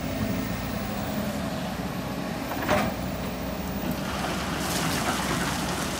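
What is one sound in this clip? Rocks and dirt rattle and scrape as an excavator bucket digs.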